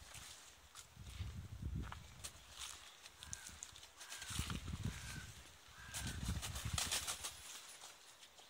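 Birds flap their wings.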